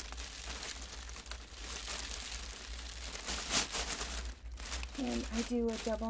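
Cellophane wrap crinkles and rustles as a hand gathers it.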